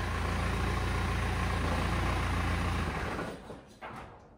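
A car engine idles with a steady low rumble, then shuts off.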